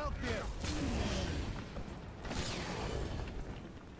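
A fiery explosion booms.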